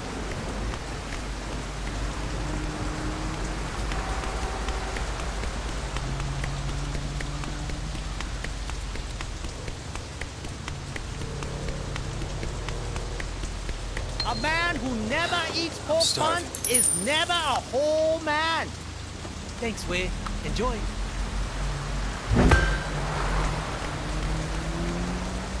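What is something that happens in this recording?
Rain falls steadily on wet pavement.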